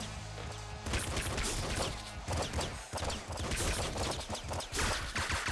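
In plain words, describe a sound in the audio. Rapid electronic gunshots fire in a video game.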